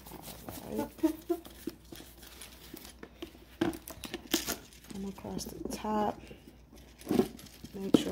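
A cloth rubs and wipes against a smooth surface.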